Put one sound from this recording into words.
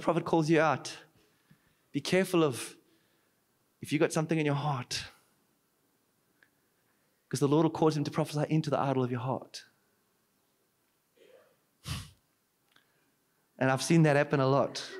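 A man speaks with animation into a microphone, heard through a loudspeaker, with pauses between phrases.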